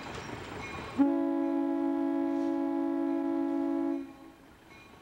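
A diesel locomotive sounds its air horn.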